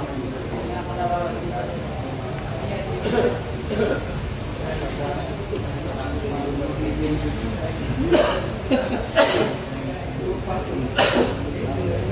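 A crowd of men murmurs and talks nearby.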